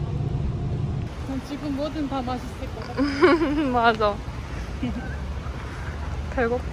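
Traffic hums along a city street.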